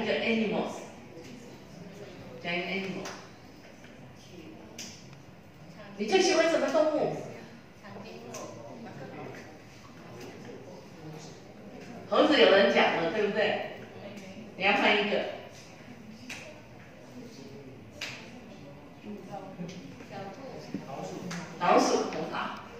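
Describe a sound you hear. An elderly woman speaks with animation through a microphone in a large room.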